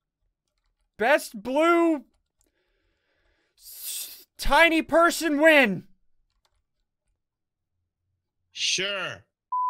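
A young man talks animatedly into a close microphone, with bursts of excited exclamation.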